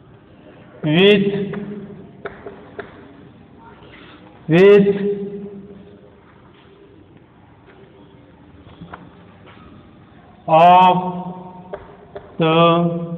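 A man speaks loudly in short bursts in an echoing room.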